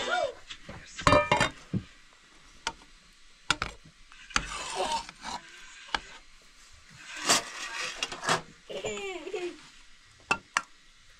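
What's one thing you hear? A metal ladle scrapes and clinks against a cooking pot.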